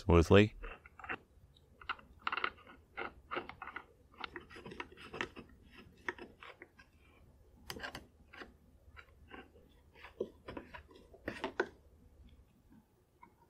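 A screwdriver clicks and scrapes against a small metal screw.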